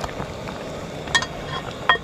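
A heavy metal lid clanks onto a pot.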